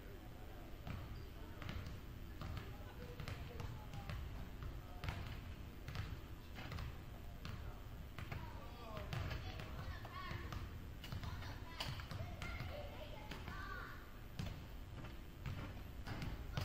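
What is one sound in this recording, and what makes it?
Basketballs bounce on a wooden floor, echoing in a large hall.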